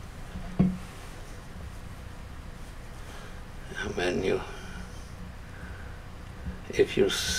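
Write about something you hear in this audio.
Fingers rub and press soft clay close by.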